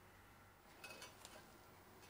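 Pliers click against a metal gear.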